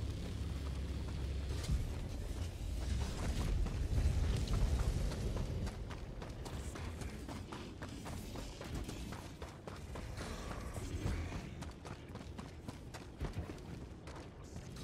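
Heavy footsteps crunch on rocky ground.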